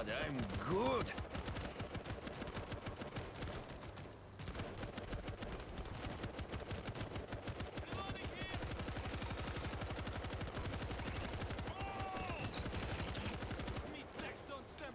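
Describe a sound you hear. A heavy machine gun fires long rapid bursts.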